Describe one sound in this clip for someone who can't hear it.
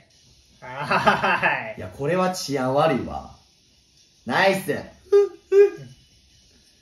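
Two young men laugh together.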